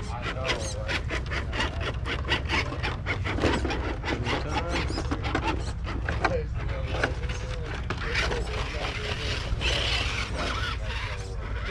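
A small electric motor whirs as a toy truck crawls over rocks.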